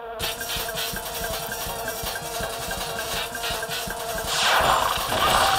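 Game music plays.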